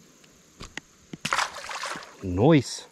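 A fishing lure splashes into shallow water.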